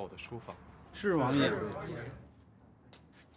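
An elderly man answers briefly.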